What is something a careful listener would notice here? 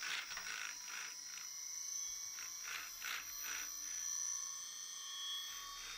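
Plastic parts knock and rattle softly as hands move them.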